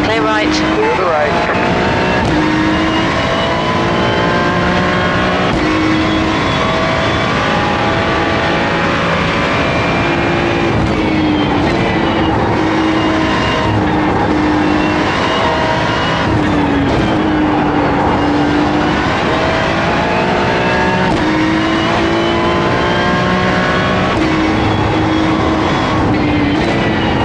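A racing car engine roars through loudspeakers, rising and falling in pitch as gears change.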